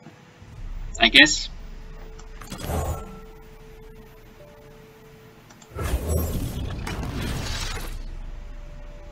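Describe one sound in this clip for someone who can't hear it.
Game sound effects whoosh and chime as cards are played.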